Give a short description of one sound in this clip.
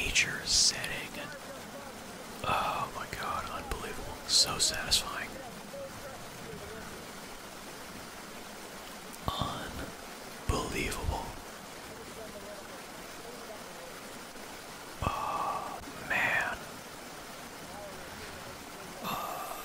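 A young man speaks close into a microphone in short bursts, with pauses.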